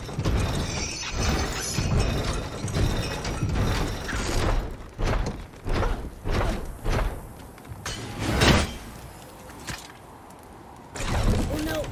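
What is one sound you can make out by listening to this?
A wooden cable car rattles and creaks along an overhead wire.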